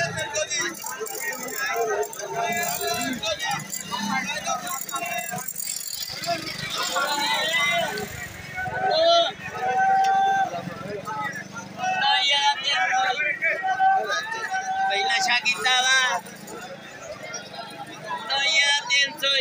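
A crowd of men talk and shout all around, outdoors.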